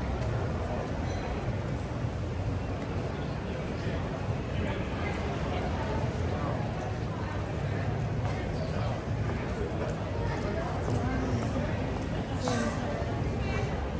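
A crowd of people chatters in a busy street.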